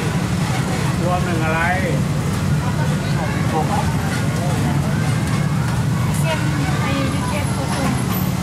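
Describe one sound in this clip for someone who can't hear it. An engine hums low and steadily.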